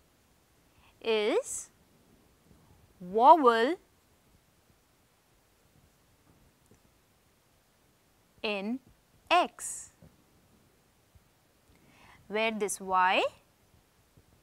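A young woman speaks calmly in short phrases, close to a microphone.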